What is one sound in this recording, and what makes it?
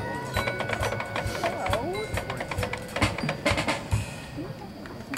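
Drums beat sharply in a marching band.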